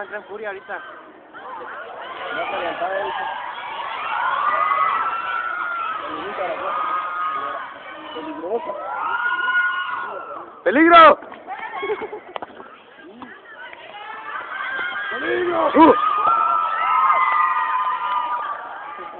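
Boys shout and call to each other outdoors.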